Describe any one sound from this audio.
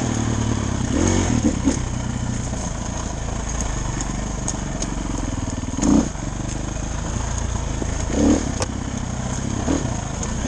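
A vehicle's body rattles and clunks over bumps.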